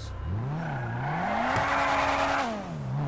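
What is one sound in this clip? Tyres screech as a car skids to a stop.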